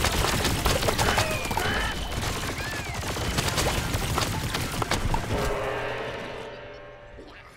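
Loud blasts and crackling bursts of game combat fire rapidly.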